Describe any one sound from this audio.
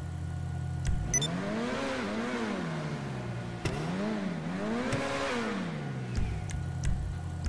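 A car engine revs up and down twice.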